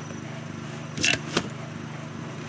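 An item is picked up with a short metallic rattle.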